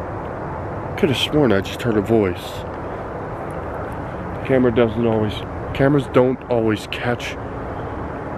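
A man speaks close by in a low, calm voice.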